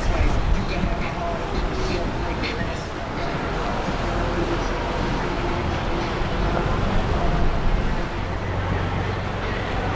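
A boat engine rumbles steadily nearby.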